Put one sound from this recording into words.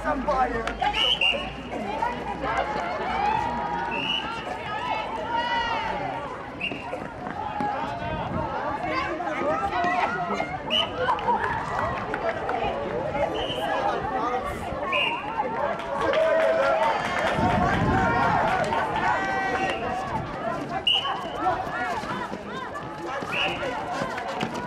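Sports shoes squeak sharply on a hard court.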